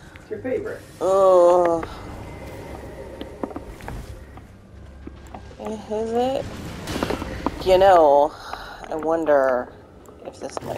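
A large wolf howls and snarls nearby.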